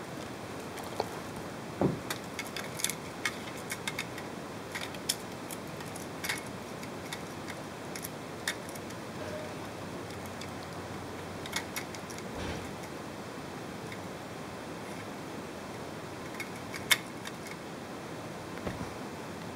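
Plastic toy bricks click and rattle as a hand handles them.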